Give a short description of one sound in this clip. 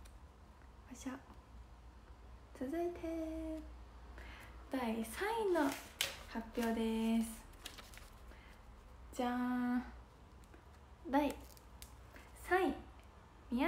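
A young woman speaks brightly and close by, in short bursts.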